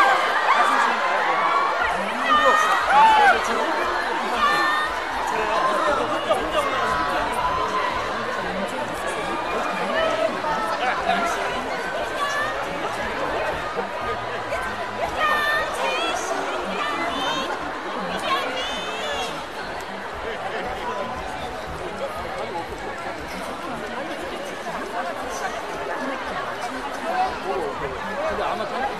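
A crowd of adults chatters all around.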